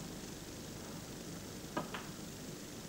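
A snooker cue taps a ball with a sharp click.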